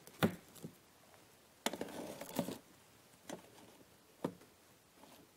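Glass jars clink and knock as they are set down on a hard surface.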